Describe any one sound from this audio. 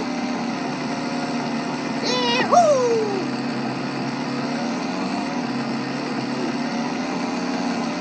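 A toy-like motorbike engine hums and whines steadily from a small speaker.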